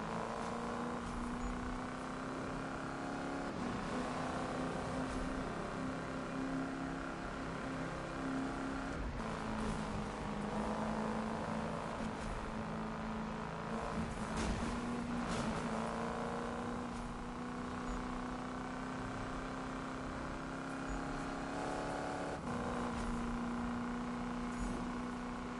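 A car engine roars steadily at high revs, shifting pitch with each gear change.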